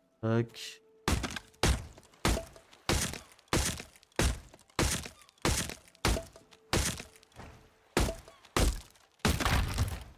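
Chopping blows thud steadily against a tree trunk.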